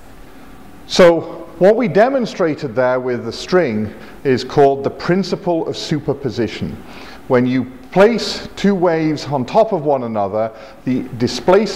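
A man talks calmly and with animation close to a lapel microphone.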